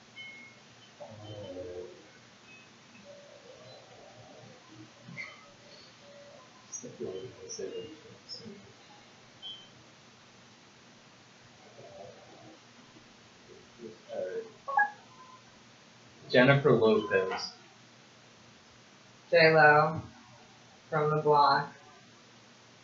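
A young woman speaks quietly close by.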